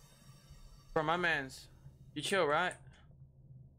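A young man speaks with animation into a headset microphone.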